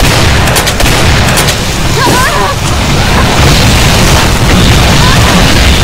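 Fireballs roar and burst in explosions.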